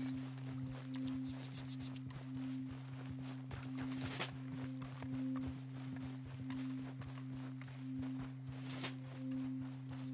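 Footsteps run quickly over soft ground.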